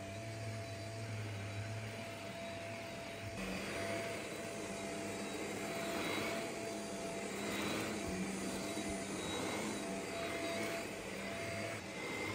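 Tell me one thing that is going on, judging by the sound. A vacuum cleaner brush swishes back and forth over thick carpet.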